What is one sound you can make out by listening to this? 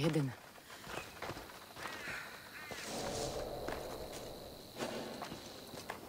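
Leaves rustle as someone pushes through a bush.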